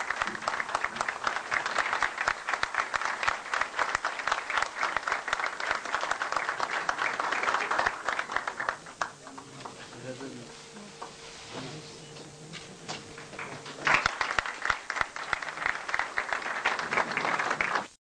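An audience claps loudly in an echoing hall.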